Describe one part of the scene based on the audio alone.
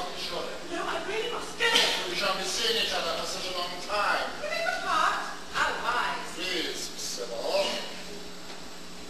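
A woman speaks excitedly, heard from a distance.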